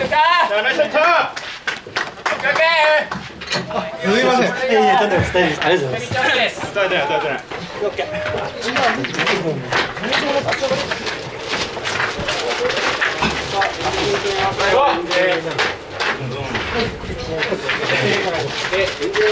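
Young men talk and call out nearby, outdoors.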